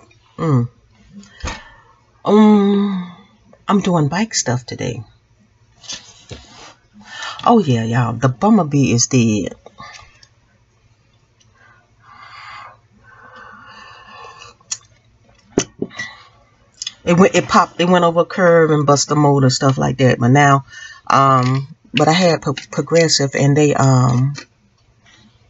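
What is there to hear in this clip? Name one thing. A woman talks calmly and close by, pausing now and then.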